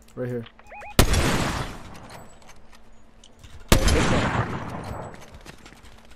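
A sniper rifle fires loud single shots that echo away.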